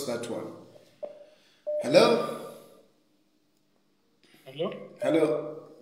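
A man speaks calmly close to the microphone, with pauses.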